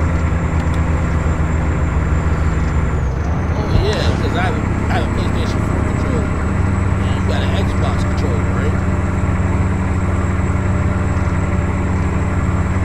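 A truck engine drones steadily at a low, even pitch.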